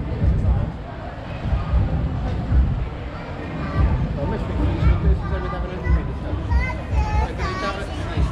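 A crowd of people chatter in the distance outdoors.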